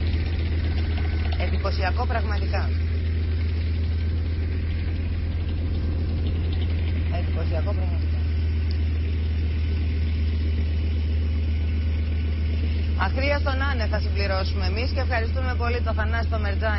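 A powerful jet of water sprays and hisses.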